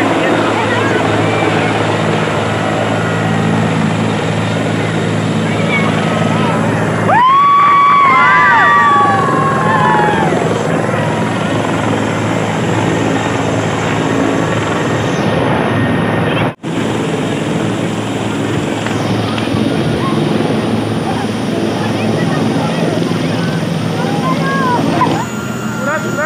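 A helicopter's engine and rotor roar loudly and steadily nearby.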